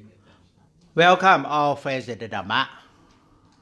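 An elderly man chants in a low, drawn-out voice through a microphone.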